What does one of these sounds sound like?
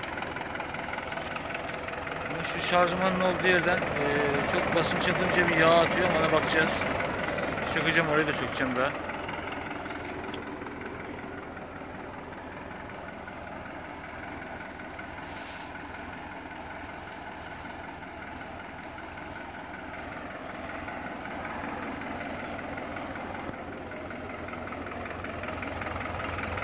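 A tractor's diesel engine idles with a steady, rapid chugging.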